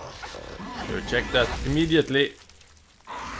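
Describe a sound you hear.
A man snarls and groans loudly.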